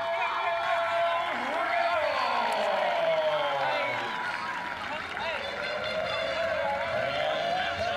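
Young men shout and whoop close by.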